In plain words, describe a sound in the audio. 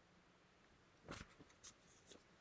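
Paper pages rustle as a book is turned.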